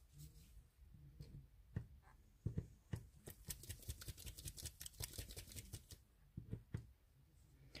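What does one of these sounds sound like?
Hard resin coasters clack and tap lightly as they are handled.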